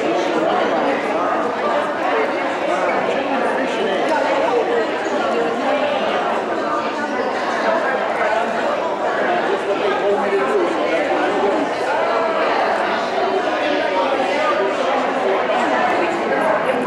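Many elderly women chatter together throughout a busy room.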